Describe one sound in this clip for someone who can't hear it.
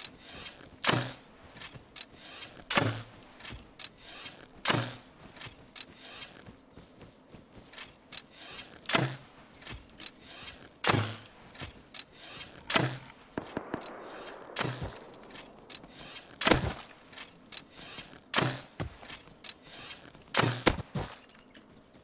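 Footsteps run steadily through grass.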